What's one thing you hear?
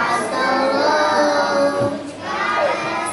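A little boy speaks into a microphone.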